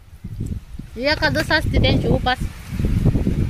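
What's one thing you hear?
A young girl speaks close by in a high voice.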